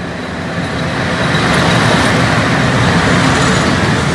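A locomotive's engine roars as it passes close by.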